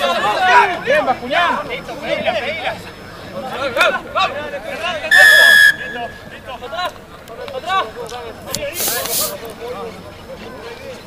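Rugby players shout and call out to each other across an open field.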